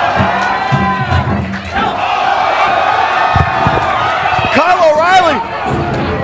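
Bodies thud against each other in a wrestling ring.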